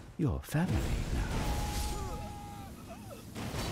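Lightning crackles and sizzles sharply.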